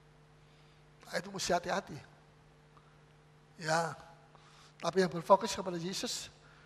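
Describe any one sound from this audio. A middle-aged man preaches with animation into a microphone, in short bursts.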